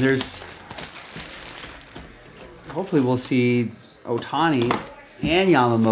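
Plastic wrapping crinkles as hands handle a box.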